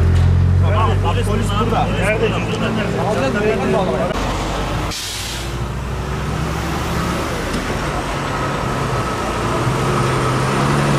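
Traffic rumbles past on a highway.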